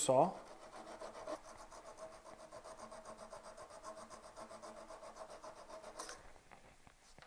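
A chisel scrapes steadily across wood.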